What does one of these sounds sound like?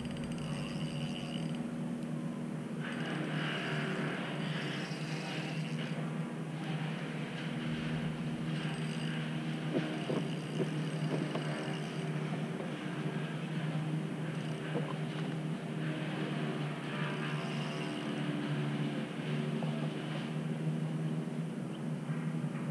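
Small waves lap against a small boat's hull.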